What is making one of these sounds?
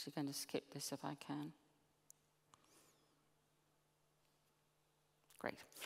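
A middle-aged woman speaks calmly through a headset microphone.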